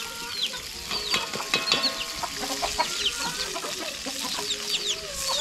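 Oil sizzles softly in a frying pan.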